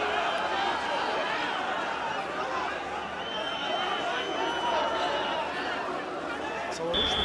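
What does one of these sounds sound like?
A large crowd of men shouts and clamours outdoors.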